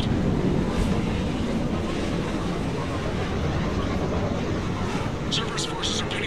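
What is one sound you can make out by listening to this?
A spacecraft's engines roar steadily as it flies past.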